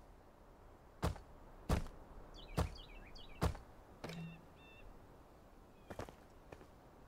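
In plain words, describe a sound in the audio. Stone blocks thud into place.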